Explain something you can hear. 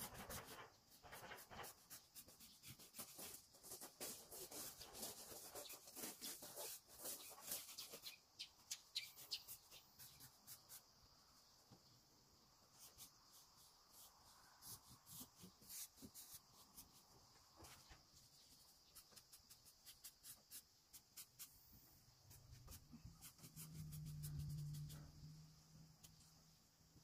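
A paintbrush swishes in short strokes across wall siding.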